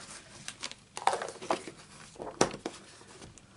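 A plastic lid clicks and snaps onto a container.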